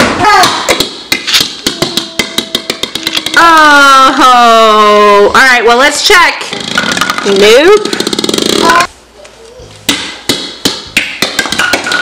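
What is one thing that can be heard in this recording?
A plastic ball rolls and bounces across a hard floor.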